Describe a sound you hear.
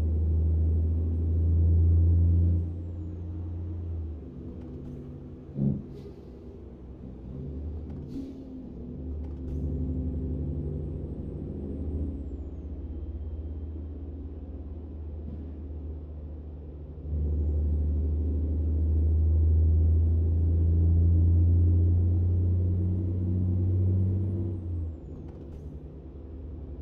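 A truck engine hums low and steady, rising and falling as it changes pace.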